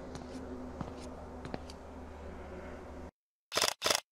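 Footsteps echo softly along a hallway.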